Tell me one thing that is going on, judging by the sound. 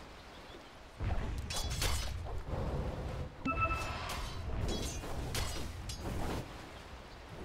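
Video game battle sounds clash and crackle.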